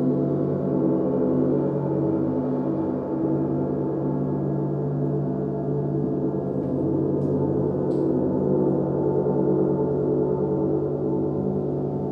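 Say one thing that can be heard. Large gongs hum and shimmer in a long, steady, swelling drone.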